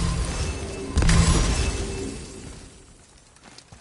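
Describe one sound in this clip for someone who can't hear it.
A crackling magical burst erupts and slowly fades.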